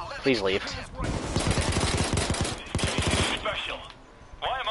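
Rapid pistol shots ring out in quick bursts.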